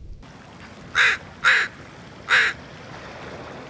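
A crow caws loudly several times.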